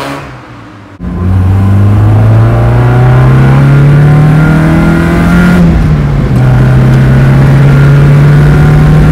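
A car engine drones loudly and steadily from inside the car, rising slightly in pitch.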